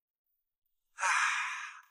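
A young man lets out a breathy groan.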